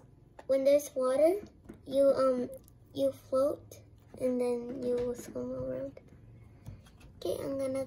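A hand presses and squishes thick slime full of beads.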